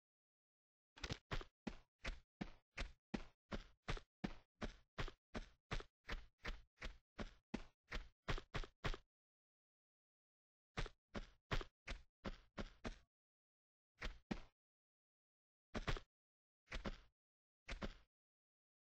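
Quick footsteps run on a stone floor.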